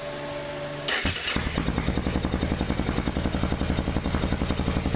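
A motorcycle engine runs louder with a rapid, even chugging.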